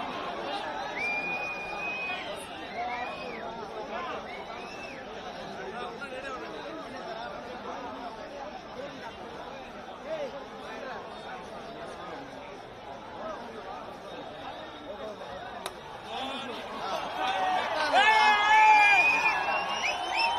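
Men nearby shout and whistle loudly.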